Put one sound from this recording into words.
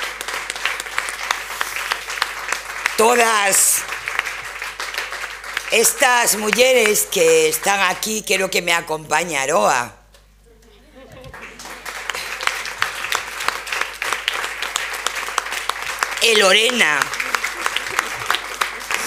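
A crowd of women claps steadily.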